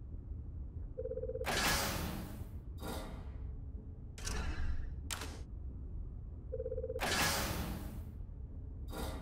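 A short humming tone sounds, then a whoosh swells.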